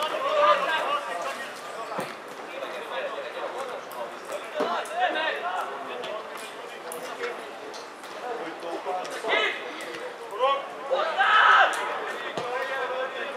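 Players shout to each other across an open outdoor field.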